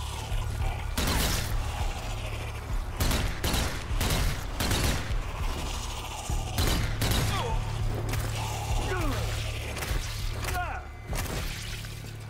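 An automatic rifle fires in short, loud bursts.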